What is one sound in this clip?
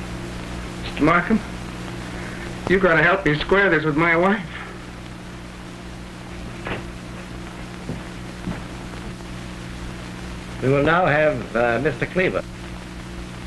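A man speaks through an old, hissy film soundtrack.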